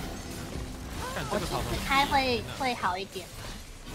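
A young woman talks excitedly close to a microphone.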